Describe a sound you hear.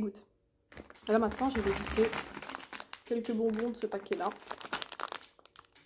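A plastic bag of sweets crinkles.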